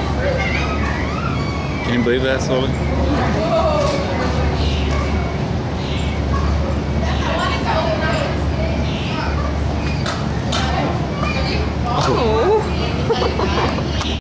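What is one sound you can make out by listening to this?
Small birds chirp nearby.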